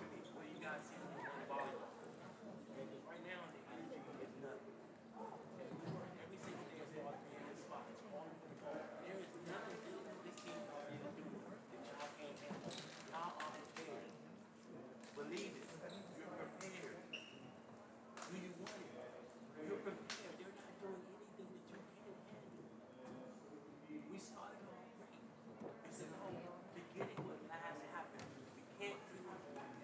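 A crowd of people chatter in a large echoing gym.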